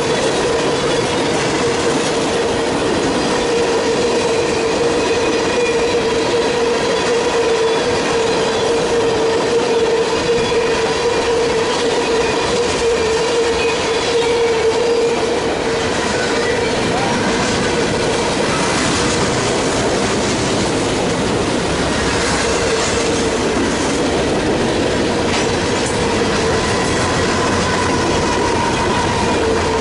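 A railway crossing bell rings steadily.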